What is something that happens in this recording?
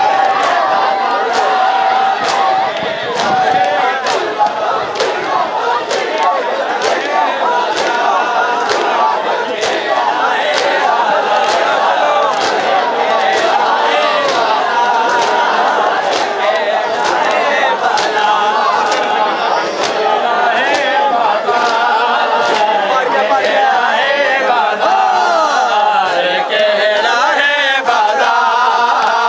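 Many men beat their chests in a steady rhythm.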